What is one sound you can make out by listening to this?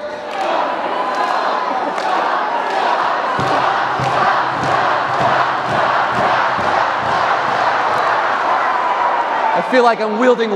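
A large crowd claps in rhythm.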